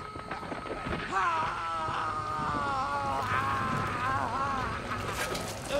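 A man screams in agony, loud and close.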